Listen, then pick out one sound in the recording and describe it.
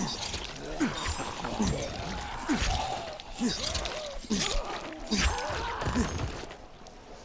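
Heavy blows thud and squelch into bodies, over and over.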